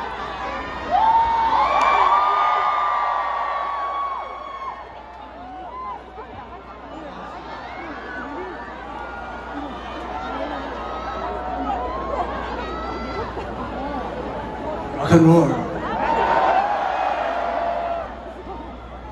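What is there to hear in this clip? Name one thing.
A crowd screams and cheers loudly.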